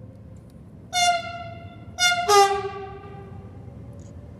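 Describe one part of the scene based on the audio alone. A train sounds its horn twice.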